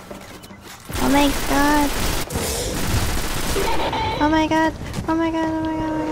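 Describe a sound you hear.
Rifle shots fire in sharp bursts.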